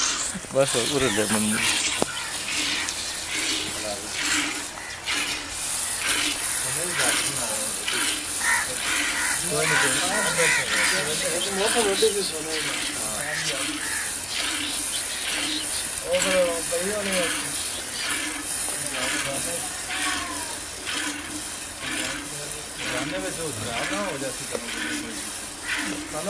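Milk squirts rhythmically into a metal pail.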